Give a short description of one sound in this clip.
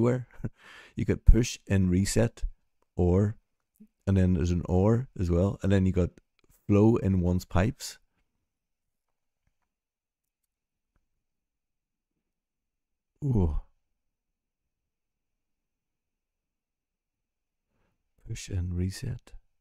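A middle-aged man talks calmly and thoughtfully into a close microphone, with long pauses.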